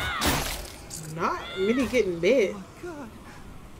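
A young woman exclaims loudly into a close microphone.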